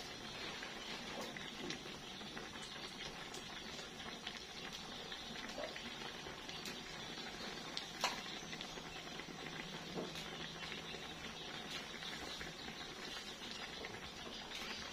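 Food sizzles and crackles steadily in a hot frying pan.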